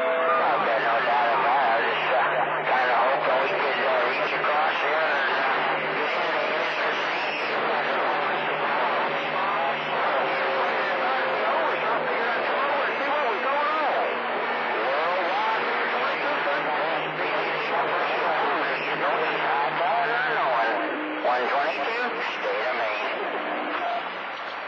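A radio receiver crackles and warbles with noisy, garbled transmissions through a small speaker.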